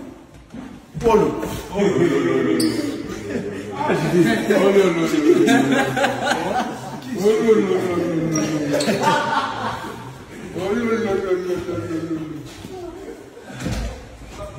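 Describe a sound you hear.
Young men laugh and shout excitedly close by.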